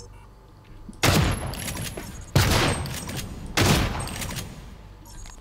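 A gun fires in loud, sharp bursts.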